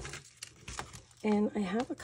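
A plastic box rattles.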